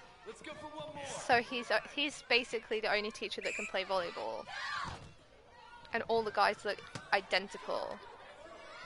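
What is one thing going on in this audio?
A group of young men shout and cheer.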